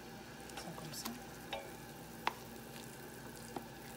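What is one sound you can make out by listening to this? A wooden spoon scrapes thick paste out of a metal can.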